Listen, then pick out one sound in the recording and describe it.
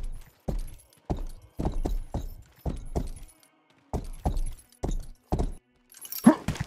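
Heavy blows thud against a wooden wall again and again.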